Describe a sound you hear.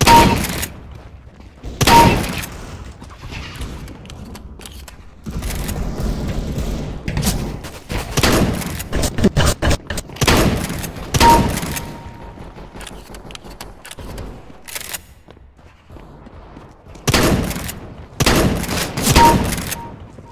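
A shotgun fires loud blasts, a few seconds apart.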